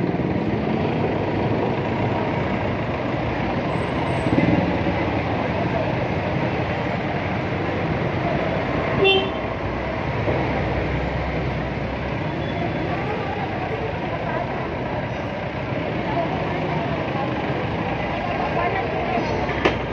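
A scooter engine idles and hums steadily close by.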